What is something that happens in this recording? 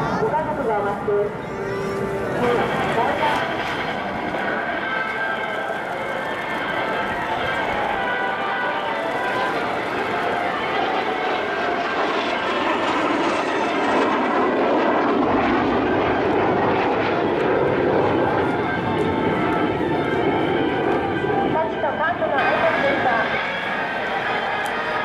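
A jet engine roars overhead and swells as the plane passes close, then fades.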